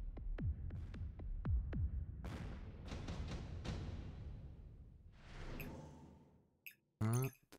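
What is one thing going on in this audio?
Explosions and gunfire rumble in a video game battle.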